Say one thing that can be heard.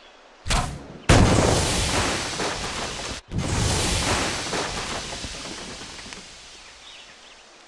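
A fire bursts with a loud roar and slowly dies down.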